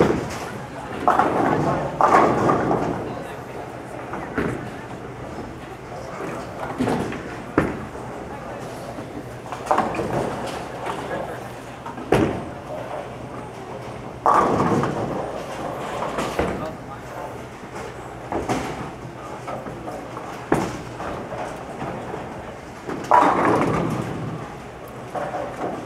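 Bowling pins crash and clatter again and again in a large echoing hall.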